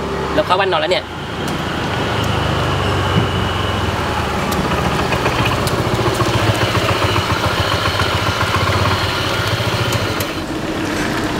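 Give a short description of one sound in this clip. A motorbike engine rumbles as it rides up and slows to a stop.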